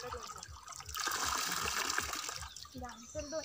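Water splashes and pours into a stream.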